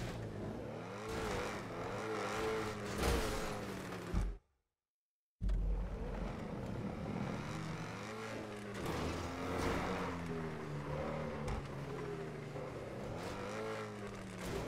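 A sports car engine revs and roars at high speed.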